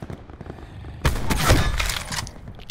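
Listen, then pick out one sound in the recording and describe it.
A rifle fires a loud, booming shot.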